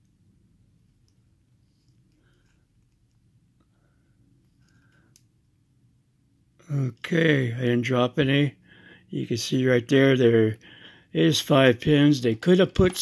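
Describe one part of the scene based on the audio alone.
A key clicks and scrapes faintly in a small metal lock.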